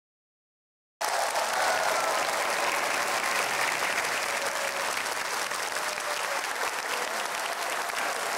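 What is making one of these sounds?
A large audience applauds and cheers in a big hall.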